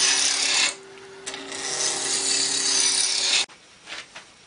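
A tool scrapes loudly against spinning wood.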